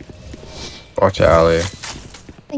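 A young man speaks briefly into a microphone.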